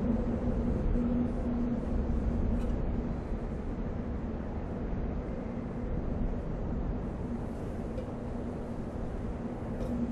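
Metal cans clink as they drop and land on one another.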